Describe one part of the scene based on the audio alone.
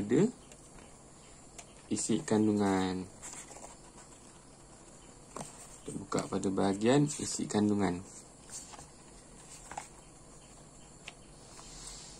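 Paper rustles as book pages are turned.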